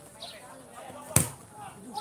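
A football is kicked with a sharp thump.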